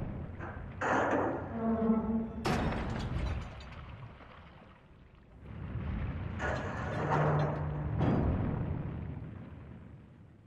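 Molten lava rumbles low and crackles.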